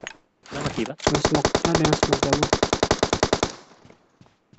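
An automatic rifle fires a rapid burst of shots.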